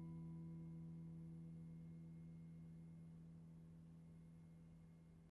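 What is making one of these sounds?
An acoustic guitar chord rings out close by and slowly fades away.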